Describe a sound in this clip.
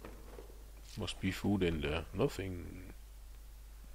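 A freezer lid swings open with a creak and a thud.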